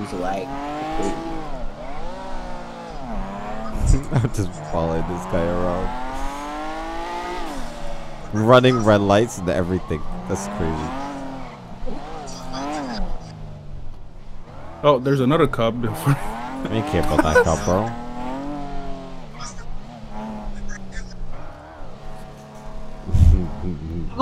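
A sports car engine revs up and down as the car accelerates and shifts gears.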